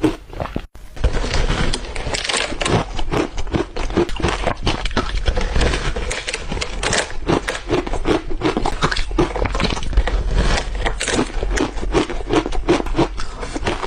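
Crunchy greens crackle as a young woman bites into them close to a microphone.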